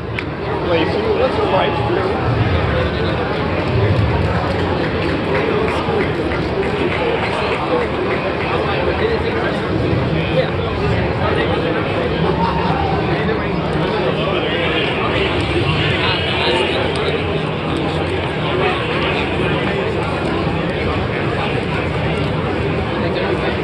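A crowd chatters in a large, busy hall.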